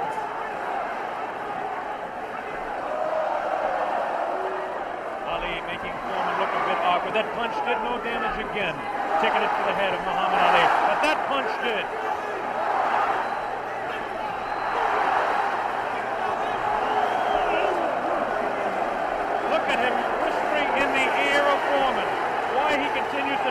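A large crowd roars and cheers loudly in a big arena, the noise swelling and falling.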